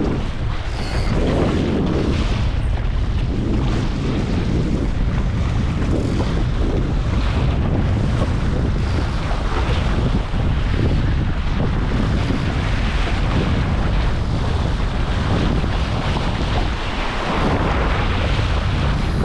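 Water splashes and rushes against the hull of a small boat.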